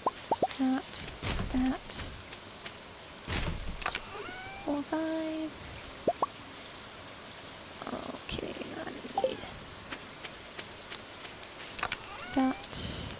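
Soft rain patters steadily.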